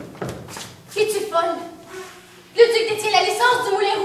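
A woman speaks loudly.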